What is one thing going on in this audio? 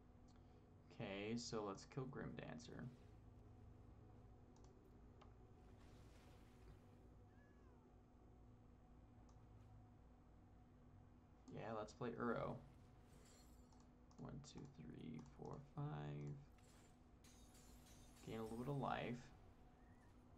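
A young man speaks casually in short bursts, close to a microphone.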